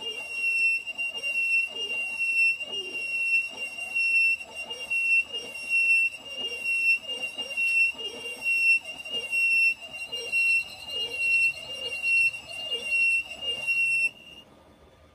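A cutting tool scrapes along spinning metal with a rhythmic chatter.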